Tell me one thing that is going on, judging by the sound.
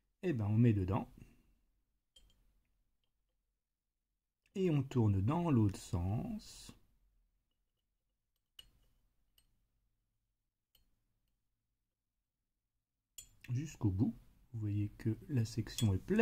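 A pen clinks faintly against a glass bottle.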